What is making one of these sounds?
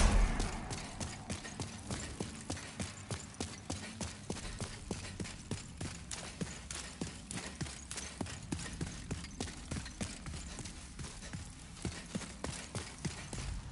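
Armoured footsteps thud and clink quickly and steadily on stone.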